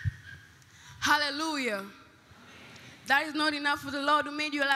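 A girl sings loudly into a microphone.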